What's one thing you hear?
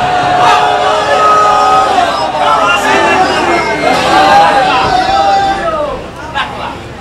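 A crowd of men chant loudly together, echoing.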